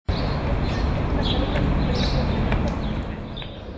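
A few adults talk quietly outdoors.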